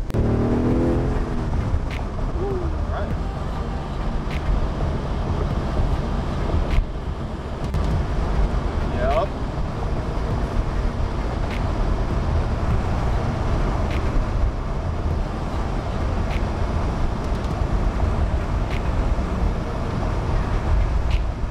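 A car engine hums steadily as tyres roll over a road.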